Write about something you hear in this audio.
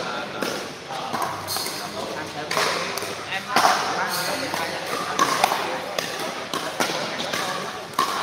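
Paddles strike a plastic ball with sharp pops in an echoing hall.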